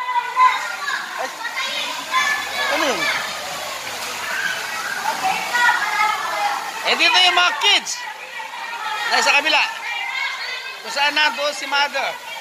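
Water splashes as people move around in a pool.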